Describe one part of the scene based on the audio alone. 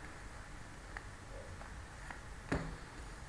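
Playing cards rustle softly as they are shuffled in the hands.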